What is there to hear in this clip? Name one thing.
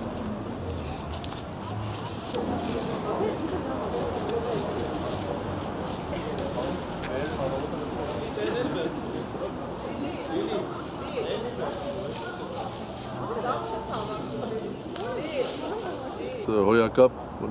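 A crowd of people talks in the background outdoors.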